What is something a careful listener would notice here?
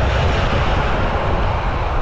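A pickup truck passes close by.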